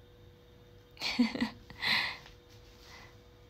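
A young woman laughs briefly close by.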